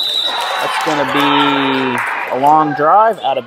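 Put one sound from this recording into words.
Young women shout and cheer together.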